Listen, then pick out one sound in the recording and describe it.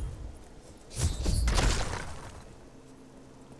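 A deep whooshing swell sounds as a checkpoint is reached.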